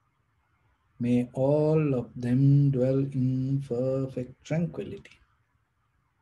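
A man chants slowly and calmly, close to a microphone.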